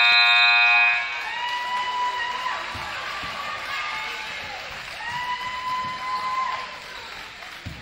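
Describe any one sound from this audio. A crowd cheers in a large echoing hall.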